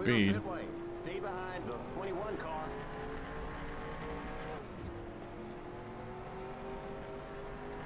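Race car engines roar steadily as cars speed past in a pack.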